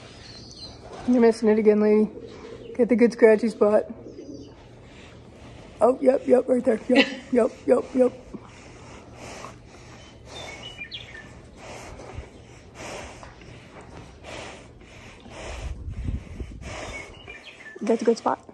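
A woman talks affectionately close by.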